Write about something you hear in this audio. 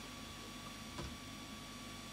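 A wooden board knocks on a tabletop.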